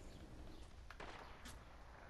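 Footsteps run quickly across grass.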